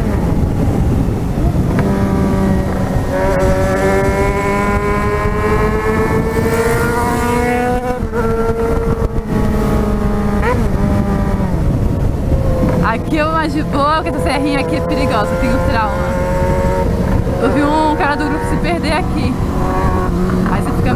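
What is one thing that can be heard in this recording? A motorcycle engine hums and revs up and down as it rides.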